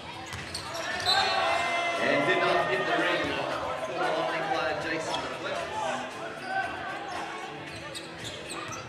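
A crowd cheers and shouts from the stands.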